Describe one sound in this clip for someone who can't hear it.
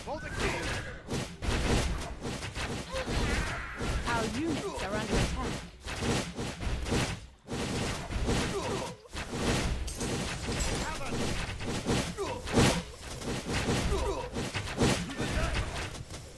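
Fiery explosions burst now and then.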